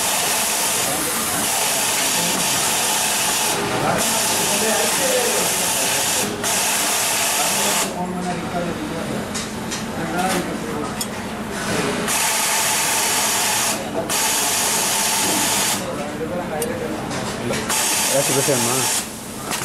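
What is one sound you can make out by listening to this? An industrial sewing machine whirs in bursts as it stitches fabric.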